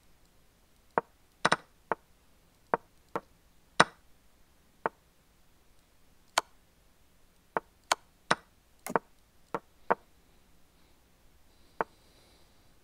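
Chess pieces click sharply into place, one move after another.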